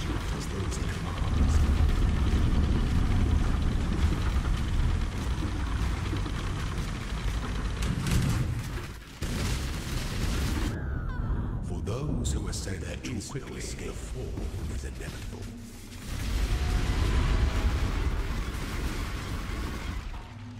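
Heavy blasts boom and rumble.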